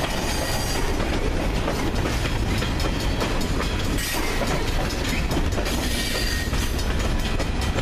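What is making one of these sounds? Steel wheels clack and squeal over rail joints.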